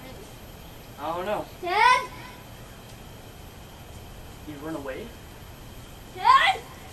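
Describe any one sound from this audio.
A young boy calls out loudly in short bursts outdoors.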